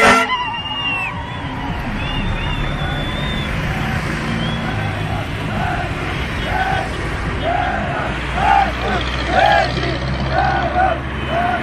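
A crowd of young men chants and shouts rhythmically outdoors.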